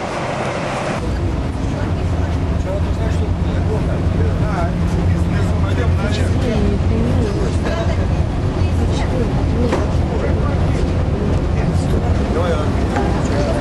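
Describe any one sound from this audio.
A boat engine rumbles steadily close by.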